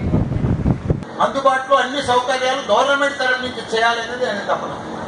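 A man speaks loudly and with animation into a microphone over a loudspeaker.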